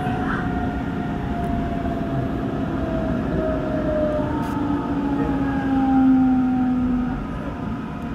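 An electric train's motors whine, falling in pitch as the train brakes.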